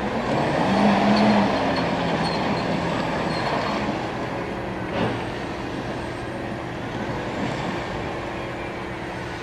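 A tank engine roars and rumbles nearby.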